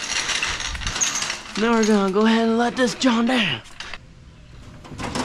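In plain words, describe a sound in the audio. A floor jack clanks as its handle is pumped.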